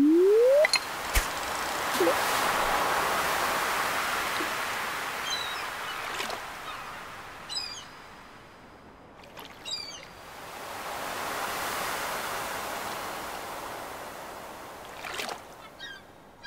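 Ocean waves wash steadily.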